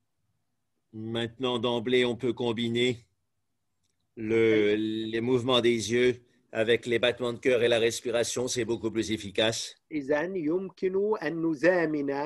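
An elderly man speaks with animation close to a microphone.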